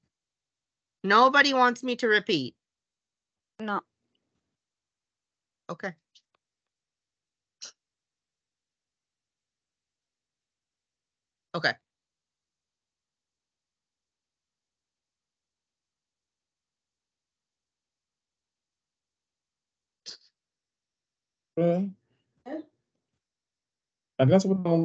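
A woman speaks in short phrases through an online call.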